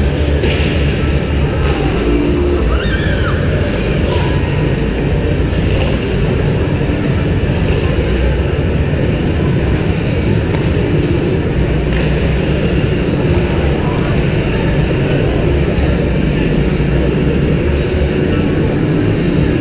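A large echoing hall hums with a steady rumble.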